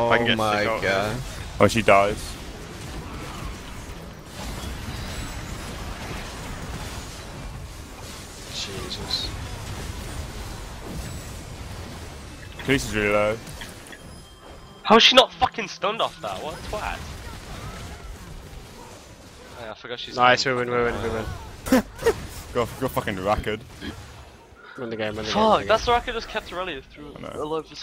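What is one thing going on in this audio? A young man talks with animation into a nearby microphone.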